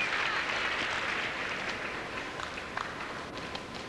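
A large crowd applauds in an echoing hall and fades out.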